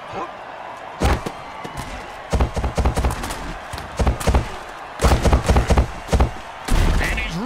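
Heavy thuds and crashes ring out as armoured players collide.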